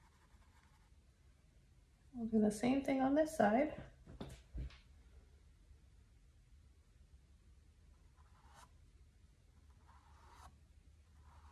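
A paintbrush strokes across a canvas.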